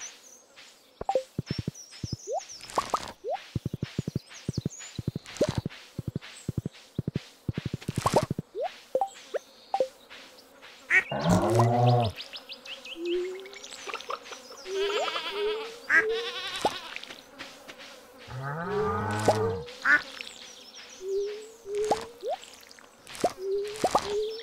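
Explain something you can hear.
Footsteps rustle steadily through tall crops.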